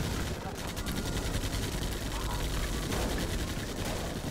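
Gunfire and explosions crackle in a battle.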